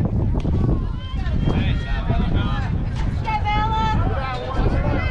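Young girls shout and call out across an open field.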